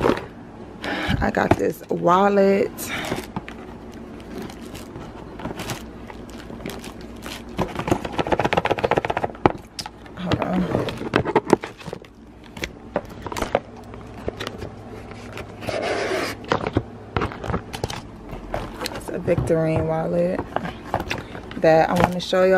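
A cardboard box slides and taps as it is handled.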